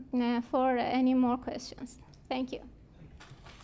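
A woman speaks through a microphone in a large room.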